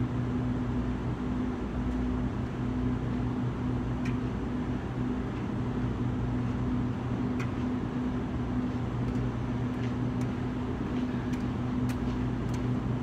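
Footsteps approach on concrete.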